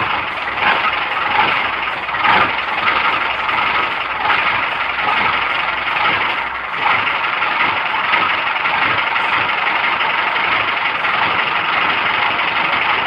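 A vehicle's engine rumbles steadily as the vehicle drives along.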